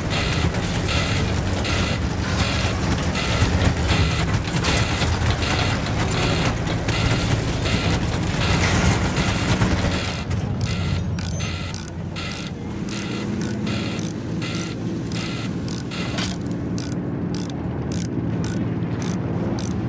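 Metal tank tracks clatter and squeak in a fast rhythm.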